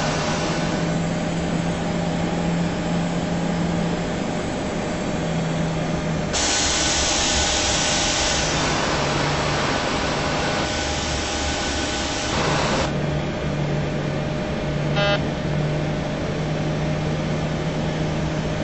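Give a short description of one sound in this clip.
Jet engines hum steadily, heard from inside a cockpit.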